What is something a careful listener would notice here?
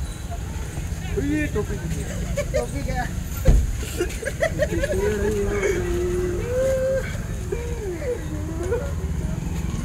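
Men call out loudly nearby.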